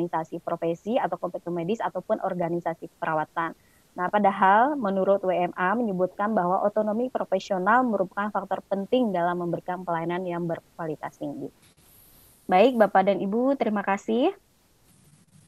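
A woman speaks steadily through an online call.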